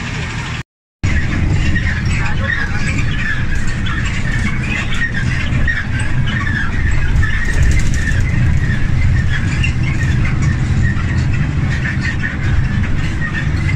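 A bus engine drones steadily from inside the moving bus.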